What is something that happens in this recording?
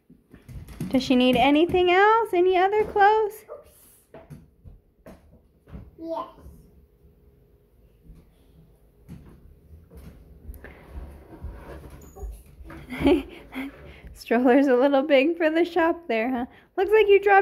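Toy stroller wheels roll over a wooden floor.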